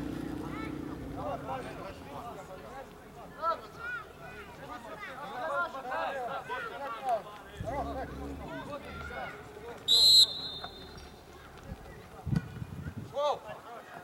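Young men shout to each other across an open field, far off.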